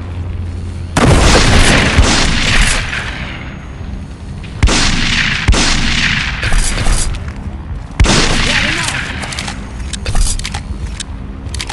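A shotgun fires several loud, booming blasts.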